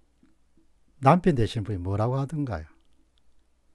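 A man speaks warmly into a nearby microphone.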